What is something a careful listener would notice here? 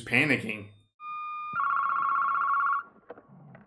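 A digital alarm clock beeps rapidly and steadily.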